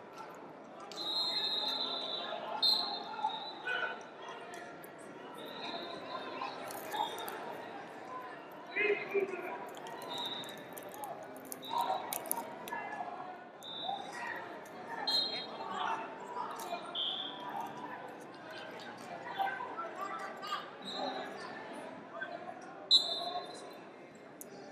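Sneakers squeak on a mat.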